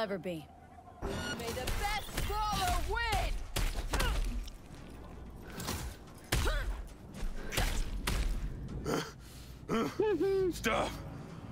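Fists land heavy punches with dull thuds.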